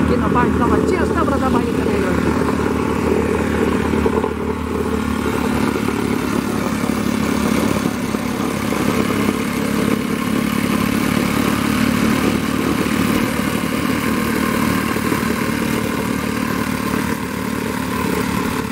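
A plate compactor engine roars and rattles steadily close by.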